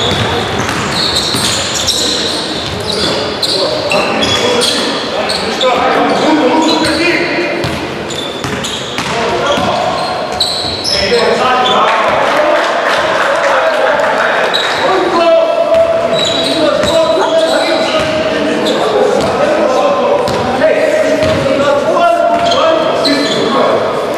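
Sneakers squeak sharply on a court in a large echoing hall.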